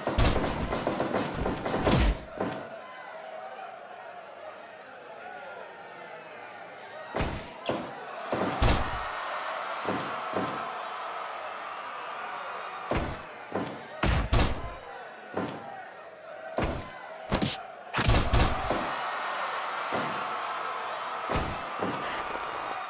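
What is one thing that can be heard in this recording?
Heavy blows and slams land with sharp thuds.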